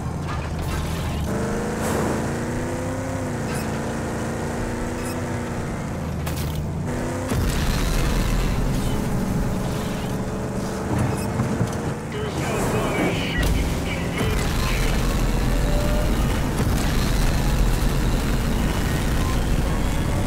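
A vehicle engine roars steadily as it drives.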